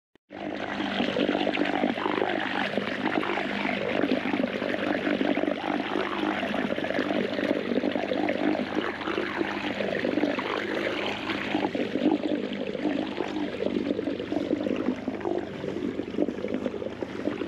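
Water splashes and churns behind a moving boat.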